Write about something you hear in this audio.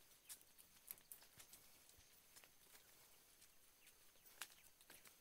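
Footsteps crunch on a dirt trail among dry leaves and twigs.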